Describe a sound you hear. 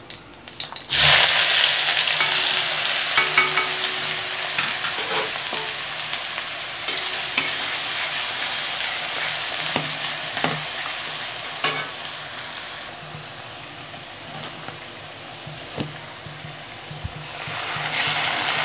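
Food hits hot oil with a sudden loud sizzle that slowly settles.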